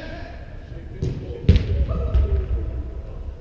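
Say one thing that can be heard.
A ball is kicked with a loud thump in a large echoing hall.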